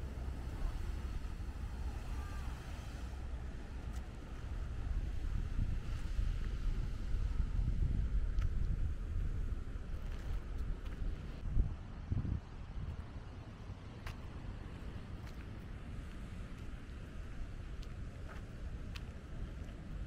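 Sea waves break against rocks nearby.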